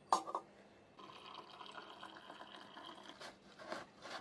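Water pours into a glass cup.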